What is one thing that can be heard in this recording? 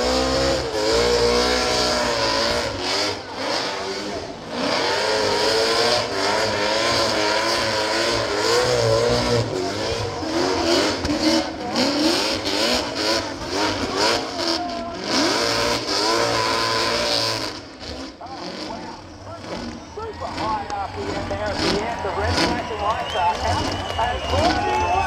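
A car engine revs hard and screams at high pitch.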